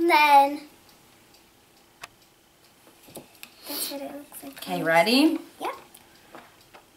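A young girl speaks brightly and close by.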